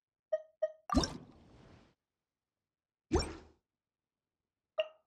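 Soft electronic chimes ping a few times.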